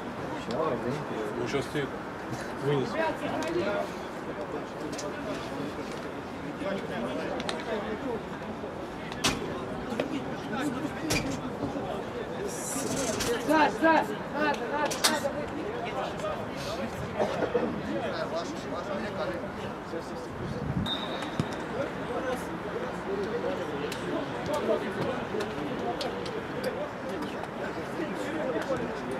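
Men on a football pitch call out and chatter outdoors.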